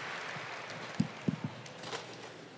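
A microphone thumps as it is handled.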